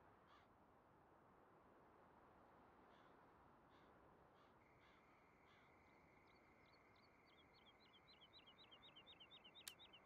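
Wind blows softly over open grassland.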